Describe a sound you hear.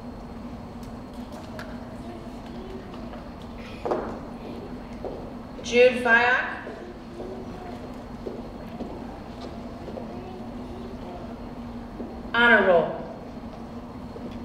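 A woman reads out names through a loudspeaker in a large echoing hall.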